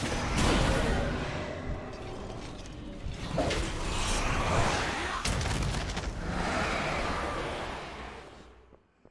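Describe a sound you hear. Magical spell effects whoosh and crackle in bursts.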